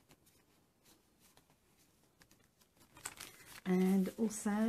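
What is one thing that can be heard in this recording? Foam sheets rustle and scrape softly as hands handle them.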